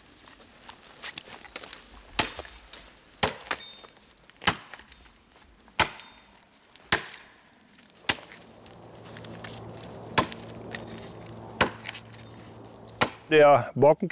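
An axe chops into a tree trunk with sharp, regular blows.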